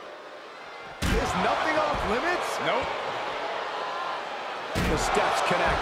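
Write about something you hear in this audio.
A steel chair slams down with a loud metallic crash.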